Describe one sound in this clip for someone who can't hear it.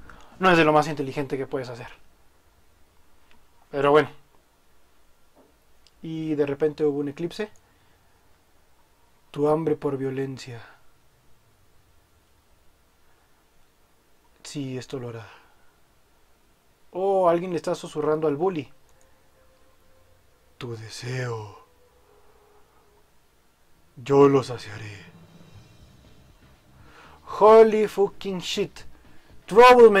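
A young man speaks into a microphone in short bursts with pauses between them.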